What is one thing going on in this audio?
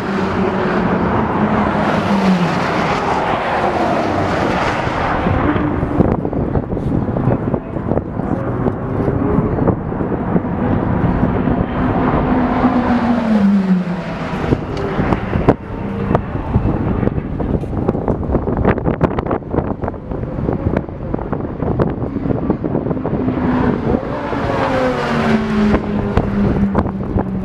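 Race cars roar past at high speed, their engine pitch dropping as each one goes by.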